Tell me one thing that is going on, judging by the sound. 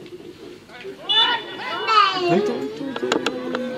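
A child calls out nearby in a high voice.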